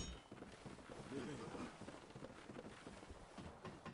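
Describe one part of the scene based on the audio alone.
Boots clang on a ladder's rungs while climbing.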